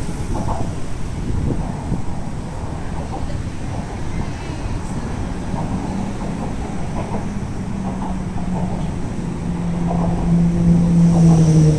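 Cars drive past close by, their engines and tyres humming on the road.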